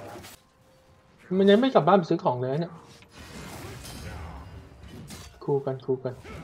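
Video game spell effects and weapon hits clash in a fight.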